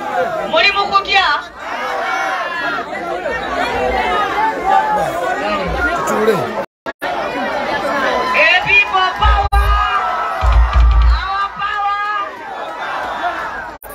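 A crowd of men and women chatters and cheers outdoors.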